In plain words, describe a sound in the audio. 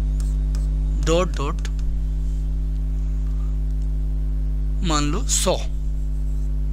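A man speaks calmly into a clip-on microphone, in short phrases.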